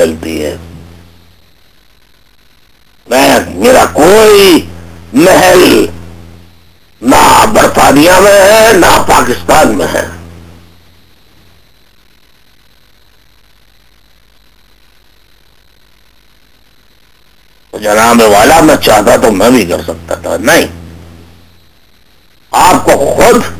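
A man speaks over a microphone in short bursts, with long silent pauses between them.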